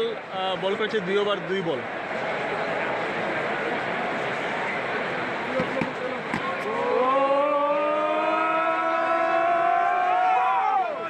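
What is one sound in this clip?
A large crowd murmurs in an open stadium.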